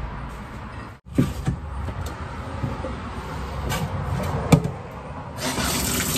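Dishes clatter in a sink.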